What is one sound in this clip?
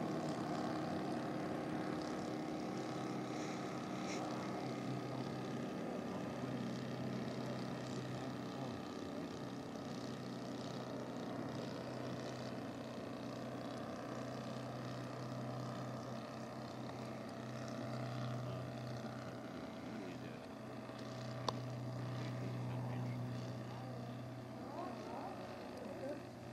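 A small propeller plane's engine drones steadily overhead.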